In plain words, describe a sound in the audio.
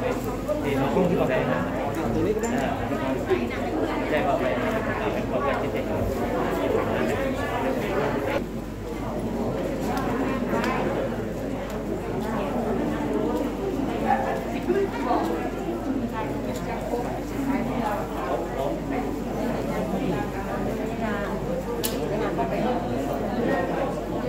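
A crowd of men and women murmur and talk nearby in an echoing hall.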